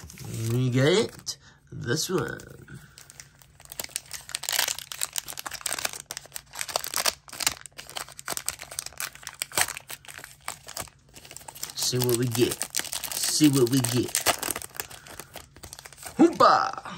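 A foil wrapper crinkles and tears as it is pulled open.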